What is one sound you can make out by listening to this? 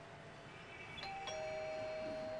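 A doorbell button clicks.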